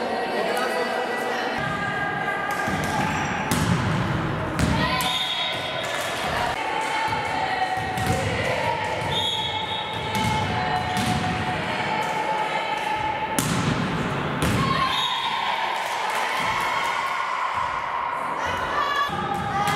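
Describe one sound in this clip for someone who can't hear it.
Young girls shout and call out to one another.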